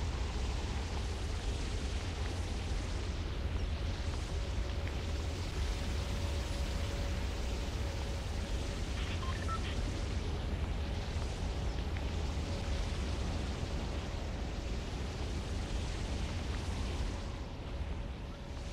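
Wind rushes steadily past a gliding character.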